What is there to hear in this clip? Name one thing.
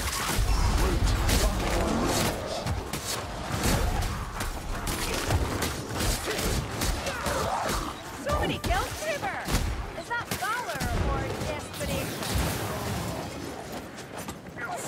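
Blades slash and thud into bodies again and again.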